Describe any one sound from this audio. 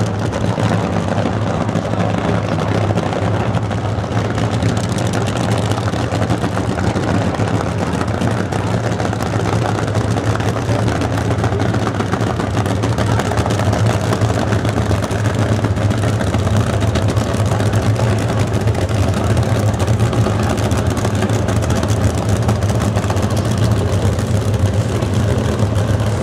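Race car engines rumble loudly and steadily close by.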